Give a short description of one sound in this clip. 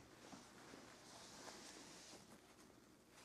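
Fabric rustles softly as it is folded by hand.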